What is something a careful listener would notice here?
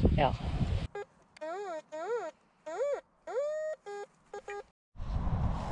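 A metal detector beeps with warbling tones.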